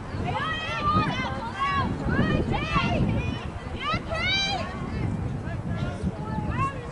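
Young women shout and call out to each other across an open field.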